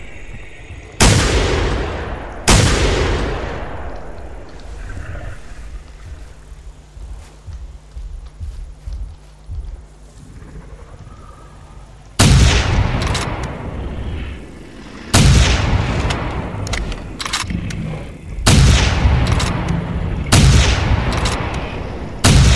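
A gun fires loud booming shots, each echoing away slowly.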